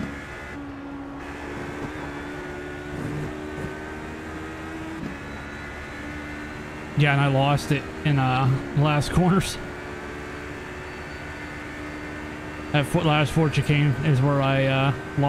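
A racing car engine drones steadily.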